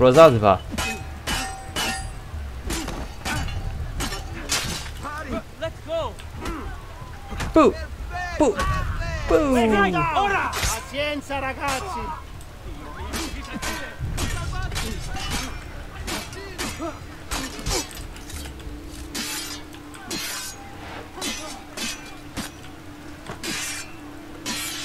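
Swords clash and clang in quick, sharp hits.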